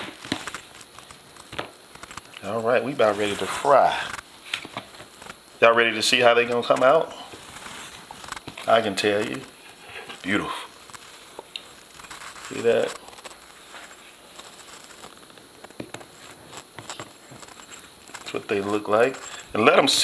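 Hands softly pat and press food into a container of flour.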